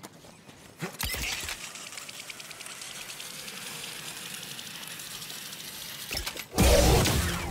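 A metal pulley whirs and hisses along a cable.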